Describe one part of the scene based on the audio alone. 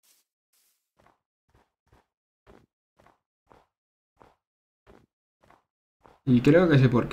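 Footsteps crunch softly on snow and grass.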